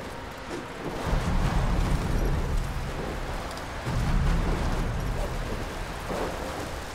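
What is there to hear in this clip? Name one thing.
Deep rumbling booms swell and fade.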